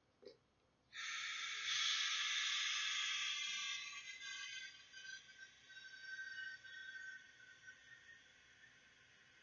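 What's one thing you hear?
Gas hisses steadily from a pressurised can through a hose, slowly growing quieter.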